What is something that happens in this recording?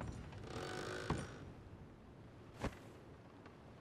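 Boots thud on wooden floorboards.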